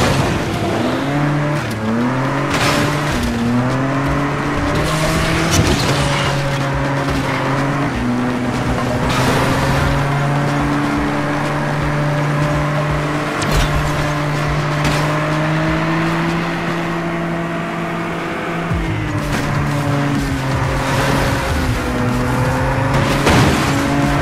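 A car engine roars at high revs, rising and falling as it changes gear.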